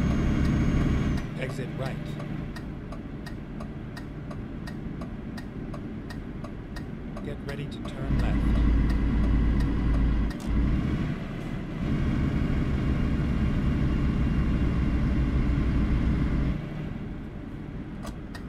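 A truck engine hums and rumbles steadily.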